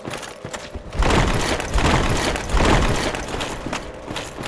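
A heavy armoured body rolls and scrapes across stone.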